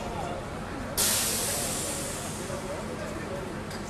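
Water sprays in a sudden loud hiss from a fire hose, then fades.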